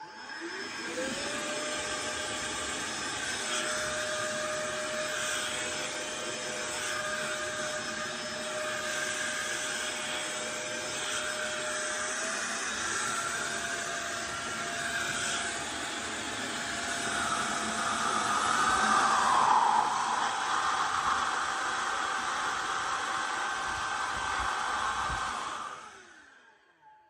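A small electric blower whirs with a high, steady whine close by, shifting pitch now and then.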